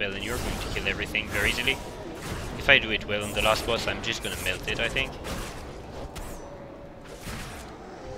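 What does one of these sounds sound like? Weapons clash and spells burst in a fast fight.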